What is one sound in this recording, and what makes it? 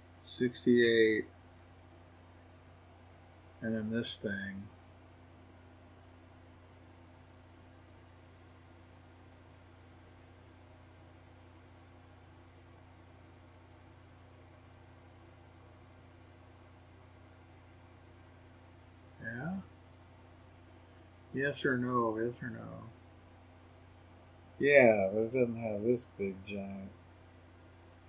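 A man speaks calmly close to a microphone, in short bursts.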